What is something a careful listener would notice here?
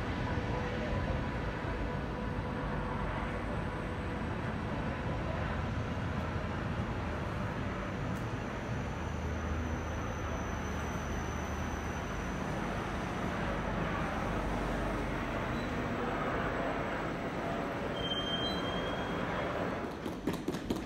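A long passenger train rolls past close by with a steady rumble and rattle.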